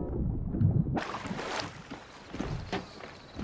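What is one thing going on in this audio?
Water splashes as a swimmer climbs out.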